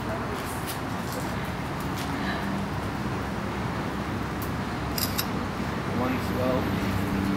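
Molten metal hisses and sizzles as it pours into cans.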